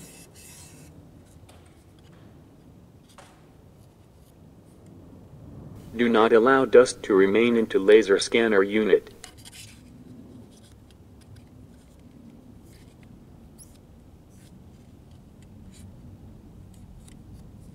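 A cotton swab rubs and scrapes lightly against plastic parts.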